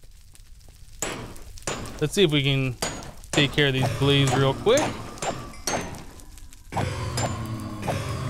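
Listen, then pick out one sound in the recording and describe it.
A sword strikes a creature with sharp hits.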